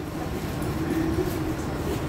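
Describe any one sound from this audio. A middle-aged woman laughs softly nearby.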